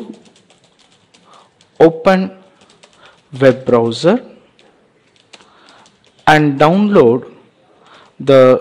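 Keyboard keys click quietly as someone types.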